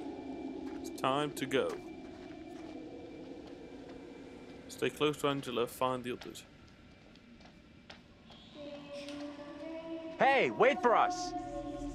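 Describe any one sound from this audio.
A young man talks casually into a nearby microphone.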